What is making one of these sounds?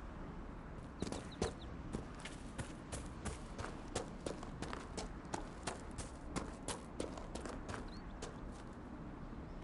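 Footsteps crunch quickly on gravel and grass.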